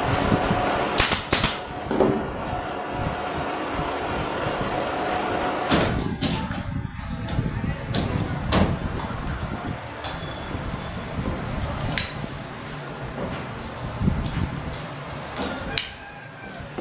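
A staple gun fires with sharp clacks.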